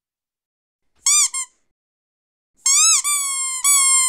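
A marmot lets out loud, shrill whistling screams.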